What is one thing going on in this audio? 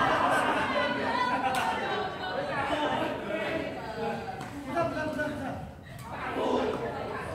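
Men and women talk and call out nearby in a large echoing hall.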